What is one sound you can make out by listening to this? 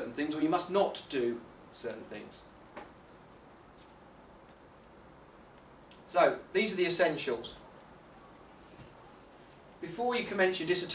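A man speaks calmly, pausing between phrases.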